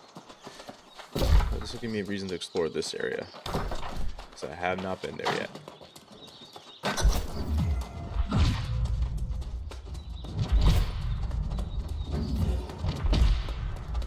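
Footsteps thud on rough ground.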